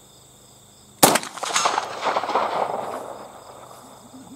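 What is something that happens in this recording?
A pistol fires a single loud shot outdoors, echoing off the hills.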